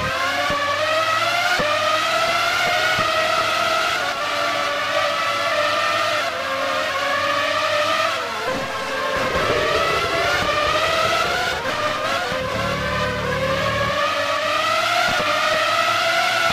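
A racing car engine whines loudly at high revs, its pitch climbing through each gear and dropping at each shift.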